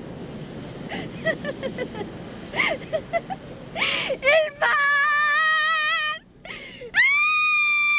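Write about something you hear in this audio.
A woman laughs loudly and heartily close by.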